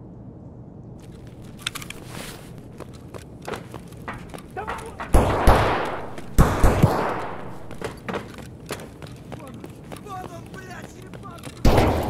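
Footsteps crunch on gritty debris.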